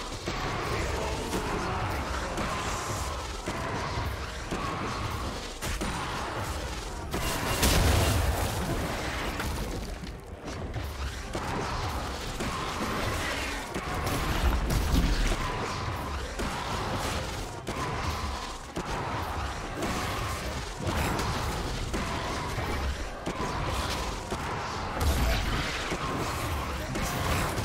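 Game sound effects of spells and hits crackle and thump during a fight.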